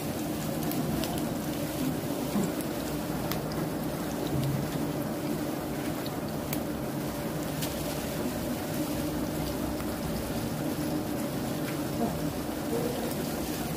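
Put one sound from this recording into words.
Oil sizzles and crackles as batter fries.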